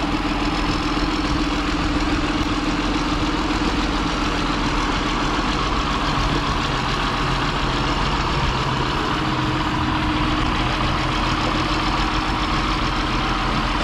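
A tractor's hydraulic loader whines as it lifts and lowers.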